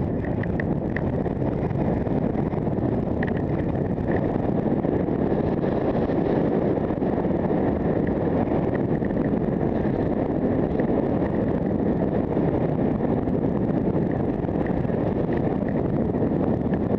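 Skis scrape and hiss steadily over packed snow.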